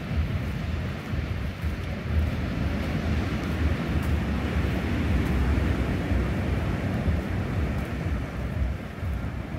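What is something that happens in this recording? Palm fronds rustle in the wind.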